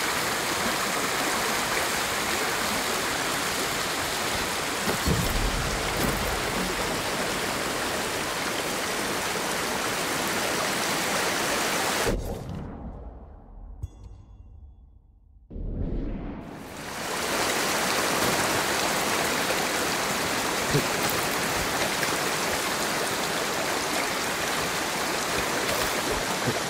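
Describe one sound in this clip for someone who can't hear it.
Water rushes and splashes steadily close by.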